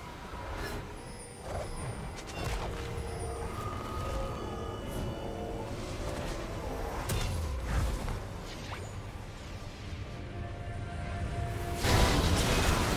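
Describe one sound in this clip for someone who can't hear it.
Video game spell effects whoosh and clash in a fight.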